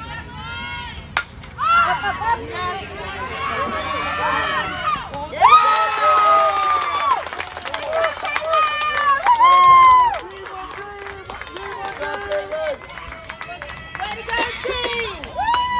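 Young women shout and cheer loudly outdoors.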